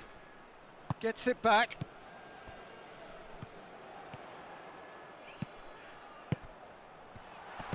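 A football is kicked.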